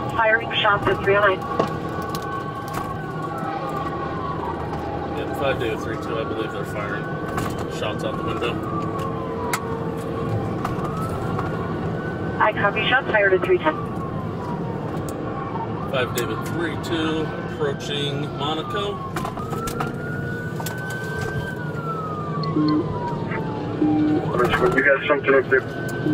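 A siren wails close by, rising and falling slowly.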